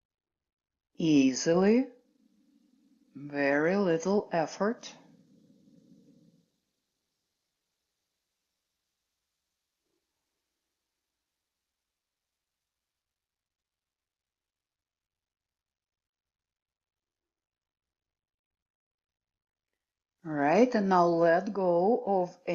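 A middle-aged woman speaks calmly and clearly, close by, with long pauses.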